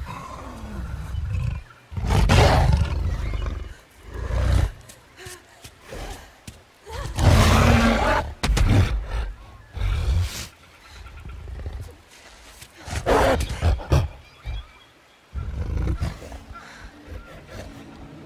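A young woman gasps and breathes heavily.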